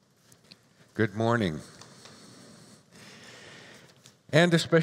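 An older man speaks calmly through a microphone in a large room.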